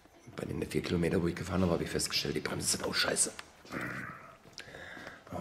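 An elderly man speaks close to the microphone with animation.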